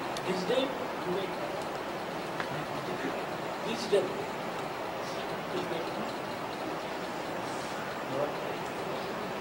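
An elderly man speaks softly and calmly in short phrases, close by.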